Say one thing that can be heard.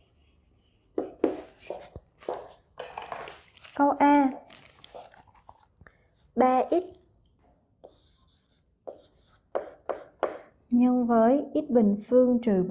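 A young woman speaks calmly and clearly close to a microphone.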